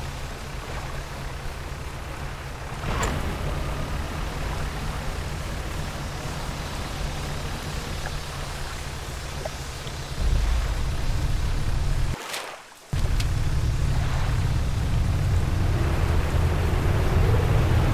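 Waves wash against a boat's hull.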